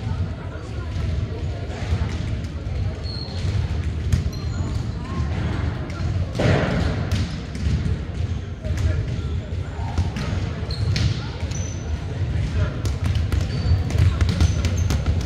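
A crowd murmurs and chatters in a large echoing gym.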